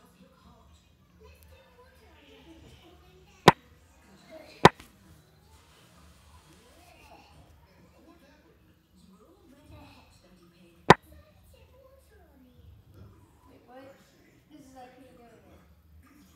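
A boy talks quietly and casually, close to a microphone.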